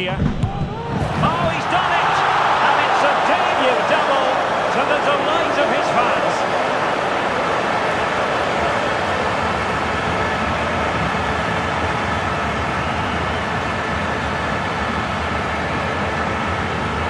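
A large crowd roars and cheers loudly in a stadium.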